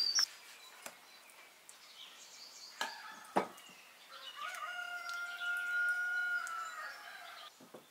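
A metal spoon scrapes and taps against a glass dish.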